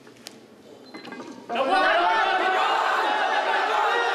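A man grunts loudly with strain.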